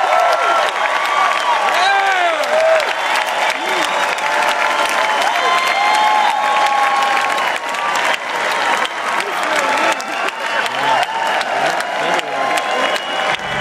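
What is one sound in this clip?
Fans whistle shrilly among the crowd.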